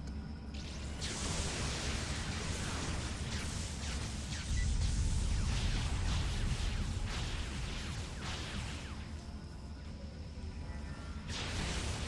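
Electric zaps and blasts crackle in a fight.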